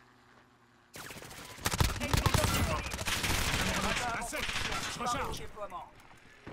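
A rifle fires a rapid burst of loud gunshots.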